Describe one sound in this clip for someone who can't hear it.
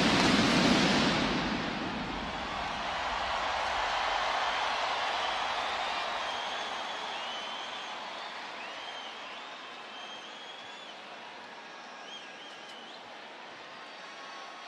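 A large crowd roars and cheers in a vast open arena, slowly fading.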